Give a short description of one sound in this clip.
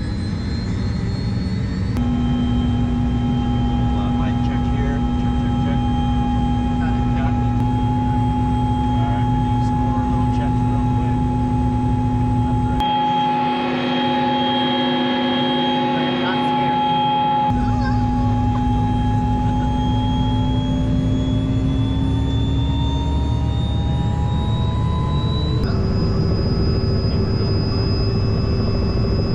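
A helicopter engine whines steadily, and its pitch rises toward the end.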